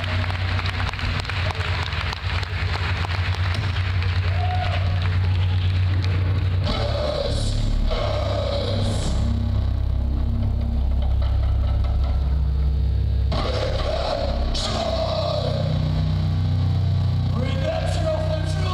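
A band plays loud music through speakers.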